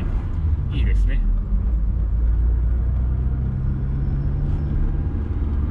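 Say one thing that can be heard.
A car engine hums and rumbles low and steady from inside the cabin.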